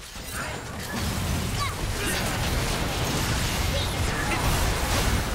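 Sword strikes and impacts clash rapidly.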